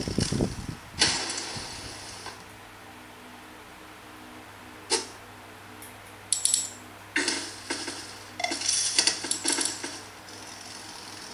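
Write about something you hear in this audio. Electronic game sound effects play in short bursts from a small speaker.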